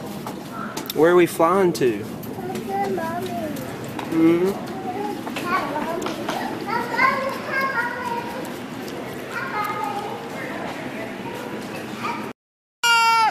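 A young child squeals and babbles nearby.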